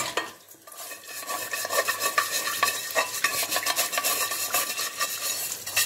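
Water runs from a tap and splashes into a pan.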